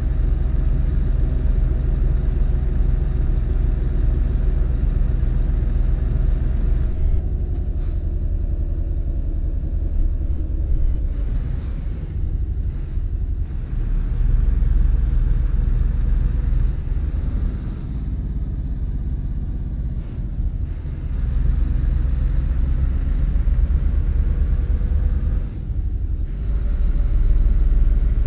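A truck engine hums steadily with a deep drone.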